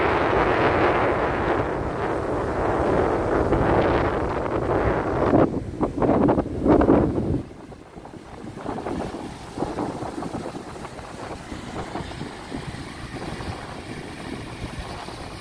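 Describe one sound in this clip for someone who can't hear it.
Strong wind gusts outdoors.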